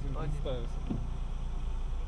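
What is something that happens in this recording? A windscreen wiper swipes across wet glass.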